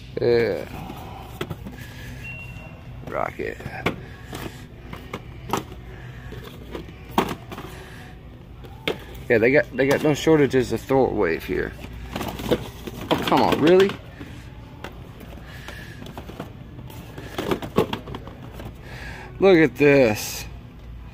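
Plastic packaging crinkles and taps as a hand handles boxed toys.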